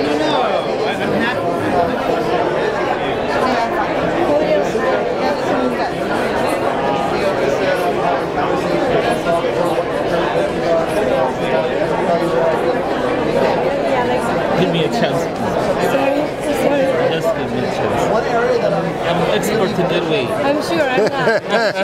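Many people chatter at once in a busy, echoing hall.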